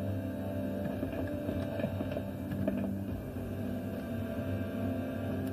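Video game music plays with a steady low hum.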